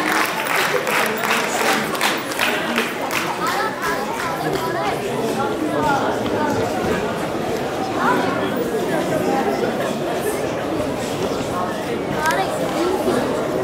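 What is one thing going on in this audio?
A crowd of children and adults chatters throughout.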